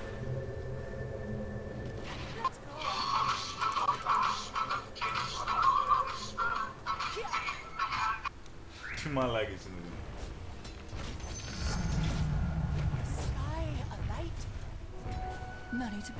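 Magical spell effects whoosh and chime during a fight.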